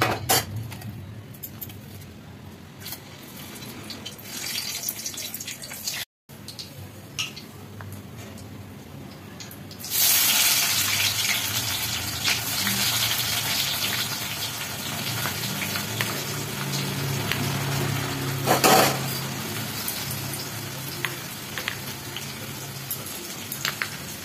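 A gas burner hisses steadily.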